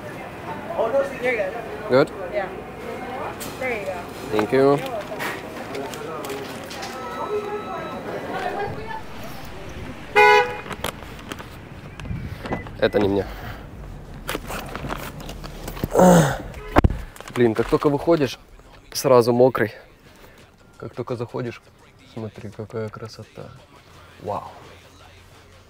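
A young man talks casually and close by.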